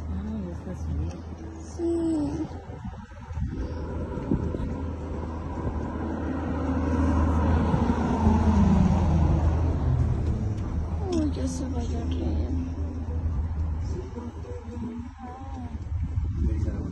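A car drives steadily along a road, with a low rumble of tyres and engine.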